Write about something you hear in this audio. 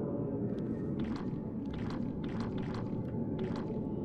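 A young woman speaks quietly into a microphone, close by.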